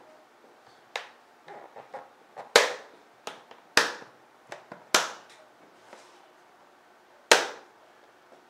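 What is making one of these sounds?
A hand taps and knocks on a hollow plastic cover.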